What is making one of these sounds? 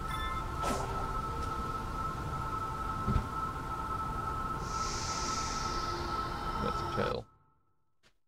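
Game music and effects play steadily, then cut off abruptly.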